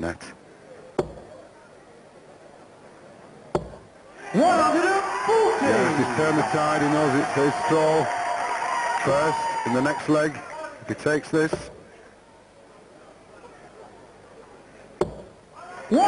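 Darts thud into a dartboard one after another.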